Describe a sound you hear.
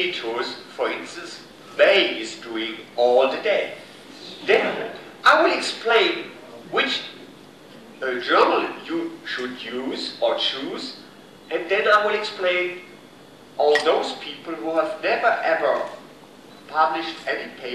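An older man speaks calmly through a microphone in a room with a slight echo.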